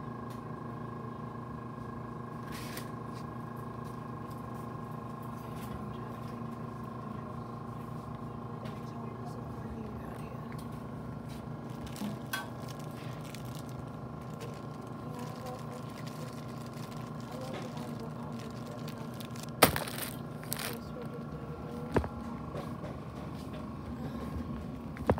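Refrigerated coolers hum steadily.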